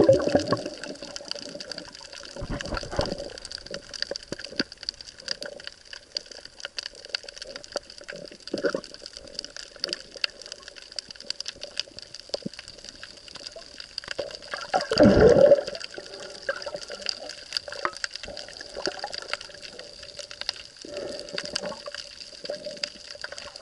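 Faint crackling and popping fill the water underwater.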